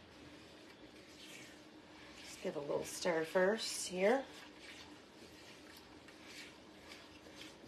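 A wooden spoon scrapes and stirs inside a metal pot.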